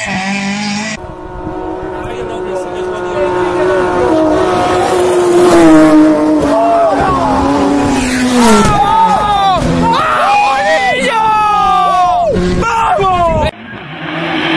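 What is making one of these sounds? A rally car engine revs high and drops with quick gear changes.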